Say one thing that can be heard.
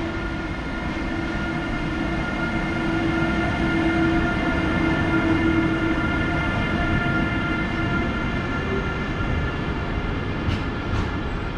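Freight wagon wheels rumble and clack over the rails.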